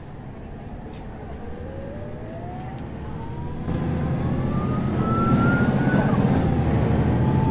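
A bus engine whines and rises in pitch as the bus speeds up.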